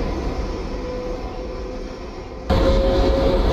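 A subway train rolls into a station with a low hum.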